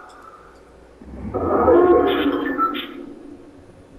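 A short electronic alert tone sounds.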